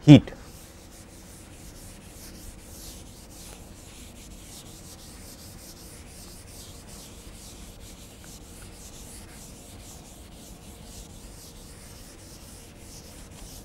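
A board eraser rubs softly across a chalkboard.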